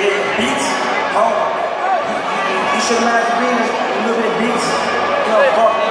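A crowd of young people chatters and calls out loudly.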